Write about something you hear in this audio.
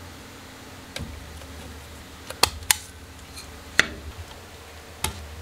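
Small metal parts click and rattle as they are handled.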